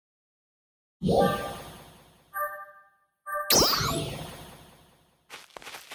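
Chiming interface tones ring out and fade.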